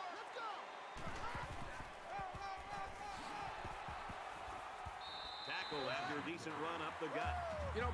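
Padded football players collide with heavy thuds.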